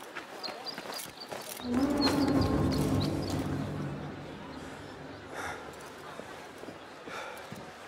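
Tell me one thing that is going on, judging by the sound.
Hands grab and scrape on stone ledges during a climb.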